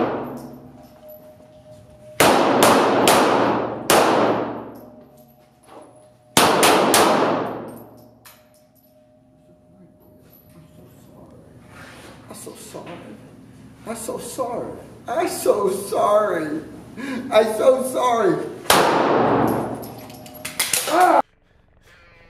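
Gunshots fire in quick bursts and echo loudly in a large hall.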